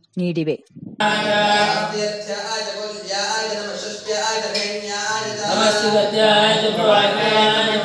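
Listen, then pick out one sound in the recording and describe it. Men chant together in a steady, droning rhythm.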